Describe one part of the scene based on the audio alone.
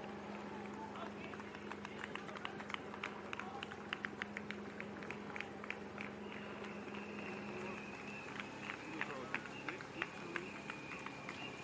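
Running shoes slap rhythmically on pavement.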